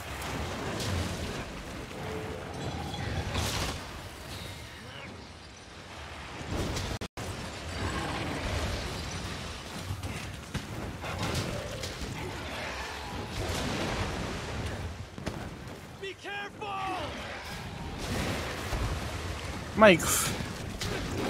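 Fiery blasts burst loudly with crackling impacts.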